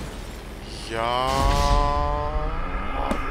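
An explosion booms with a low rumble.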